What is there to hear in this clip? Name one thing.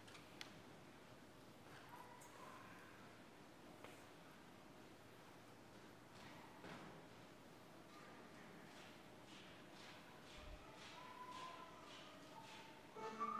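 Footsteps tap softly in a large echoing hall.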